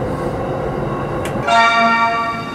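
An electric train rumbles along the track, heard from inside the carriage.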